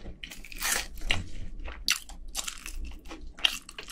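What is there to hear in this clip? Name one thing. Crispy fried chicken crackles and tears apart under gloved fingers, close to a microphone.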